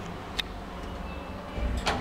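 A lift button clicks.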